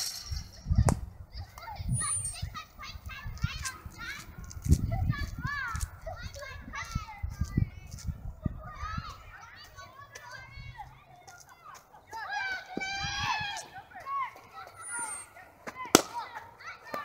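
A cricket bat sharply strikes a ball.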